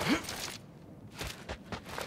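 Footsteps run across rock.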